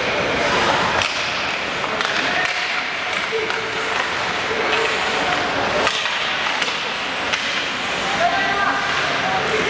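Hockey sticks and a puck clack sharply against the ice and boards.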